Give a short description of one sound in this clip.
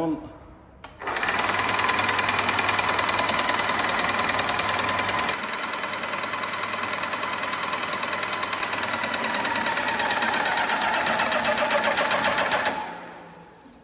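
A paint sprayer pump runs with a fast, steady rattling whir.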